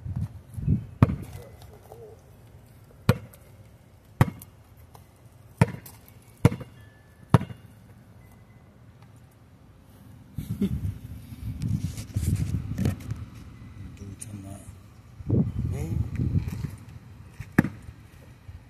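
A basketball bounces on pavement with sharp thuds.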